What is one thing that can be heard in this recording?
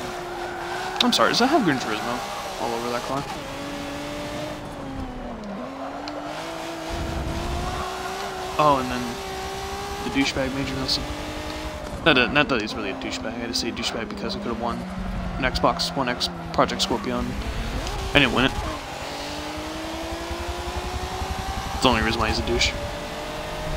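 Tyres squeal as a car slides through corners.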